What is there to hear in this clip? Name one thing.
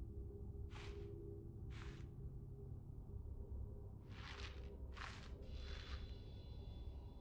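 Soft whooshing interface sounds sweep by several times.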